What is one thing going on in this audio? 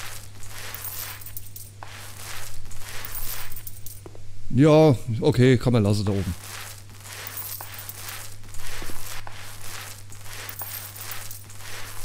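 A paint roller swishes wetly across a ceiling in repeated strokes.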